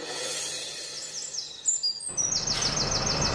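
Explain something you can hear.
Birds chirp overhead.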